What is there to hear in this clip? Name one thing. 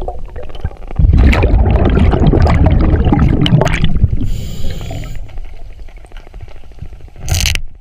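Scuba breathing bubbles gurgle and rumble underwater.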